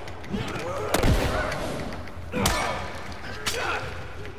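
Heavy blows thud in a close fight.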